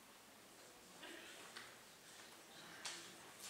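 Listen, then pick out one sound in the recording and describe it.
A man speaks quietly at a distance in a large room.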